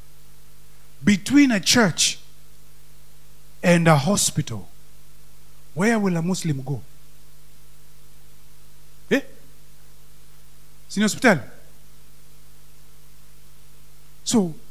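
A man speaks with animation into a microphone in short bursts, heard through a loudspeaker.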